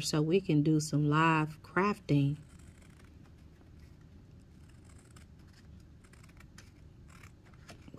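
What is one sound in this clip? Scissors snip through paper close by.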